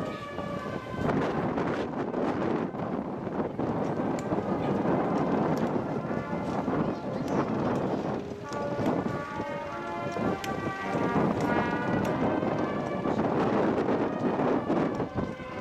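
A crowd of women sings together slowly outdoors.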